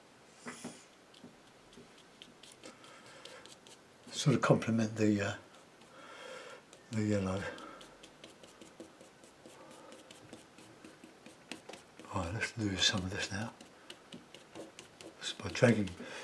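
A brush dabs and scratches softly on a canvas.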